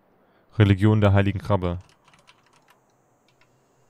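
A soft menu click sounds as a selection changes.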